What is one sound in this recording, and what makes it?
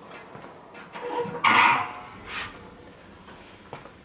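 A metal stove door creaks open.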